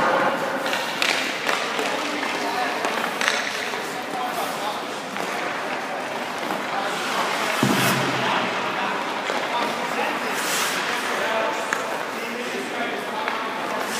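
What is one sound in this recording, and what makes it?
Skate blades scrape across ice.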